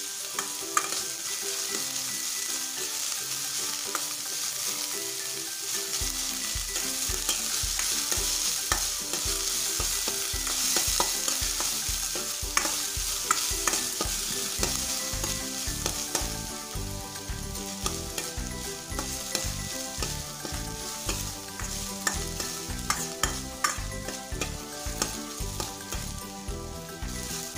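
A metal spatula scrapes and taps against a metal pan.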